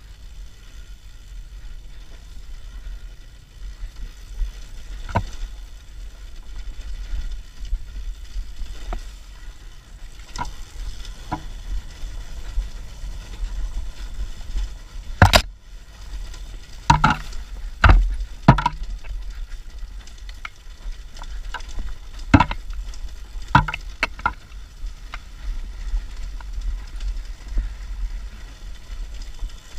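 A dirt bike engine rumbles steadily close by.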